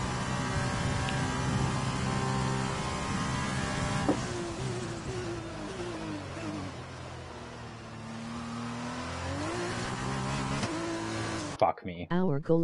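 A racing car engine whines at high revs, then drops in pitch as the car slows.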